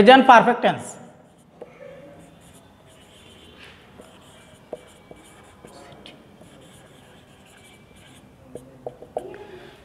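A marker squeaks faintly on a whiteboard.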